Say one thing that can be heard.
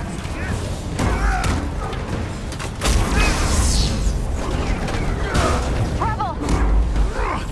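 Heavy punches thud with deep booms.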